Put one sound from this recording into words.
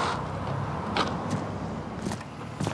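A skateboard clacks sharply against the pavement.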